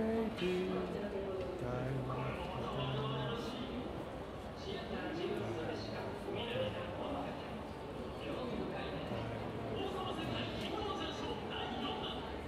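A middle-aged man talks calmly, close to a handheld recorder's microphone.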